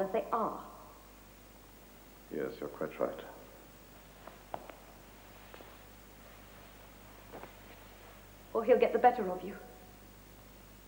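A woman speaks quietly and intently, close by.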